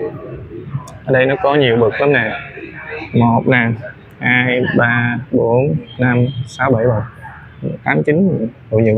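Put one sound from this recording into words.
A man speaks close by, explaining with animation.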